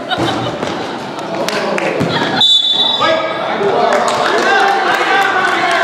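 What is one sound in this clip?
Children shout and cheer in a large echoing gym.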